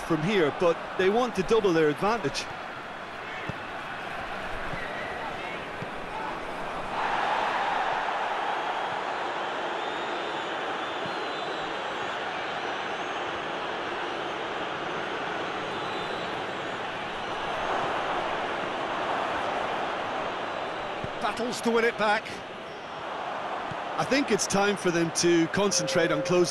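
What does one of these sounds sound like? A large stadium crowd roars and murmurs steadily, swelling at times.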